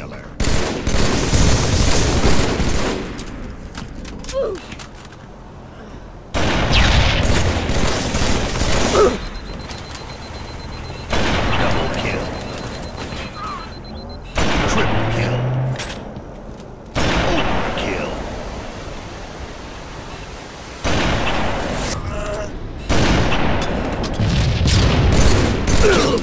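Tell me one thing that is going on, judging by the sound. Rifle shots crack loudly in quick bursts.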